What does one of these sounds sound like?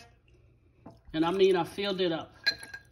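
Ice cubes clink into a glass.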